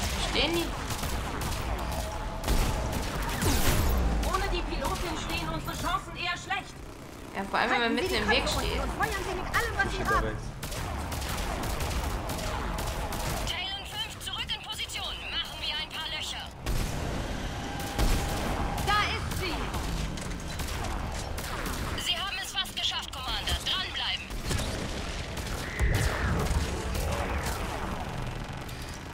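Rifle shots crack one after another.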